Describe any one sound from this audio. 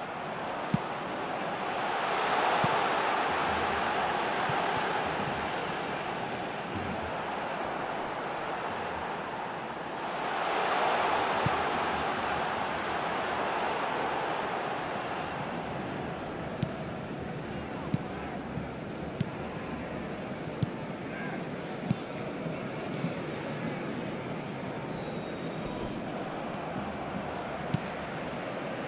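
A football is kicked with sharp thuds.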